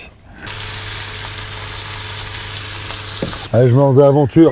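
Meat sizzles loudly in a frying pan.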